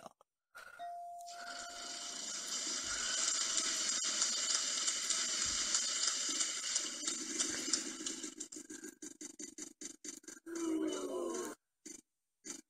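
A game wheel ticks rapidly as it spins, then slows.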